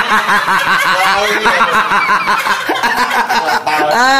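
A middle-aged man laughs close to the microphone.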